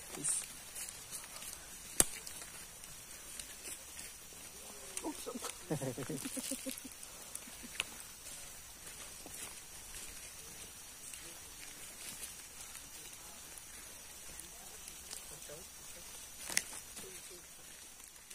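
An orangutan walks over dry leaves on a forest path.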